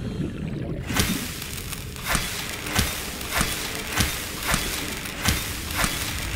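A blade slashes repeatedly through leafy plants with sharp swishes.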